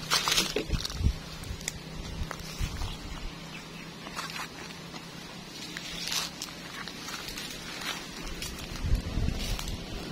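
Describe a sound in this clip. Leafy branches rustle and brush past close by.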